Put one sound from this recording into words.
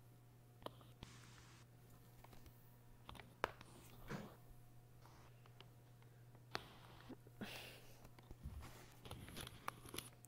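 Game pieces clack into place on a board.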